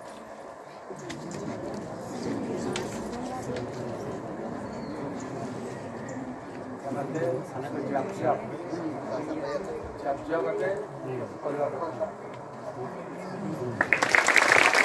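A crowd sings together outdoors.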